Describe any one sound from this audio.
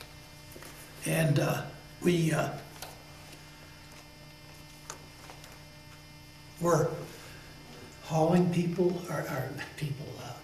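An elderly man speaks calmly and haltingly, close by.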